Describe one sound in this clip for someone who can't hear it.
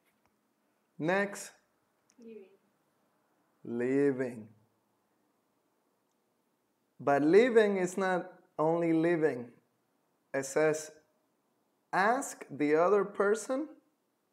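A young man speaks calmly and clearly into a close microphone, in short phrases with pauses.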